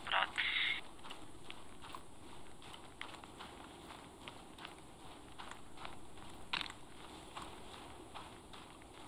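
Footsteps swish and crunch through dry grass at a steady pace.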